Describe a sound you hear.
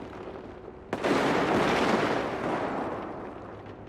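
An explosion booms loudly and slowly fades.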